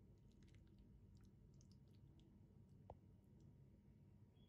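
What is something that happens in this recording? A spoon scoops through soft, wet food with faint squelches.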